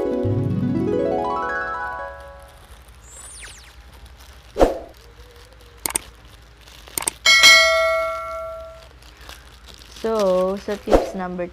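Small plastic parts click and rustle in someone's hands.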